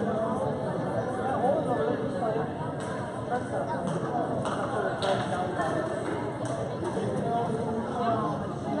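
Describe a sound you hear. A crowd of spectators chatters throughout in a large echoing gym.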